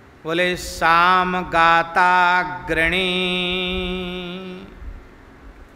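An older man chants in a long, drawn-out singing voice through a microphone.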